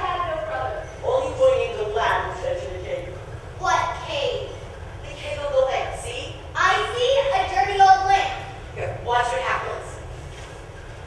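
A teenage boy speaks with animation from a stage, heard from the audience.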